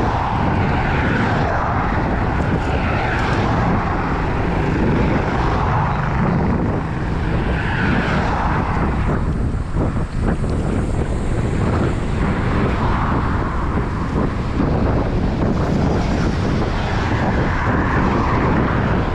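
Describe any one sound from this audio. Wind rushes loudly past the microphone outdoors.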